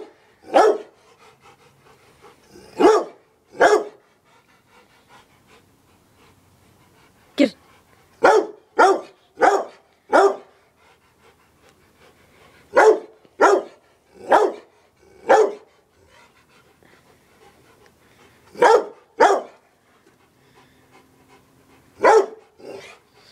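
A Rottweiler barks in single barks.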